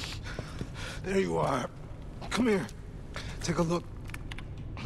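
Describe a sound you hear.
A man speaks in a weak, strained voice close by.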